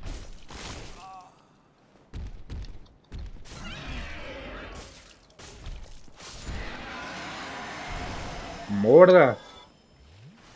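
A dragon roars and screeches loudly.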